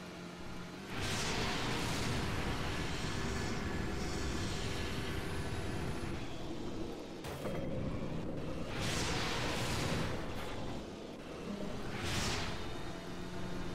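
Tyres crunch and skid over gravel and dirt.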